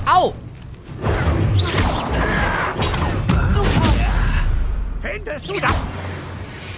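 Magic spells crackle and burst with loud blasts.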